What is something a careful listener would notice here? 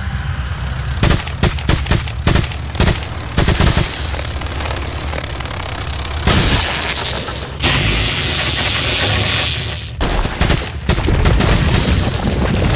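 Gunshots from a game ring out in quick bursts.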